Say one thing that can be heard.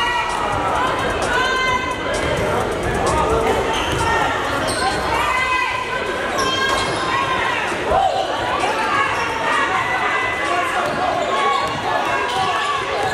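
Men talk and shout across a large echoing hall.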